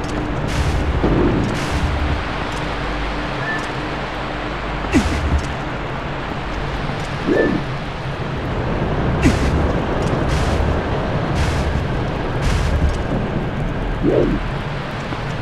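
A character grunts with effort.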